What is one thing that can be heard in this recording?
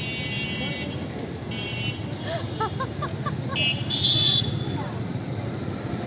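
A young woman laughs heartily close by.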